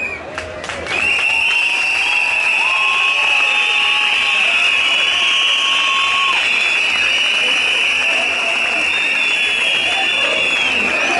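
A large crowd outdoors cheers and shouts loudly.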